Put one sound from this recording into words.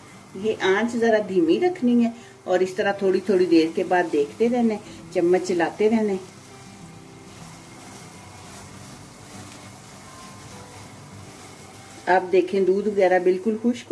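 A spatula scrapes and stirs a thick mixture in a pan.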